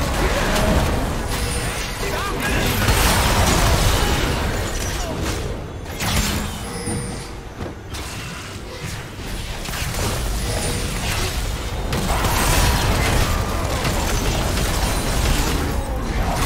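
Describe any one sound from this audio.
Spell effects crackle and blast in a game battle.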